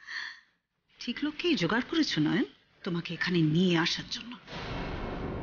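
A woman speaks close by with sharp animation.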